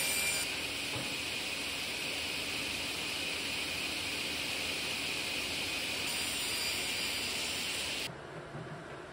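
A table saw motor hums steadily.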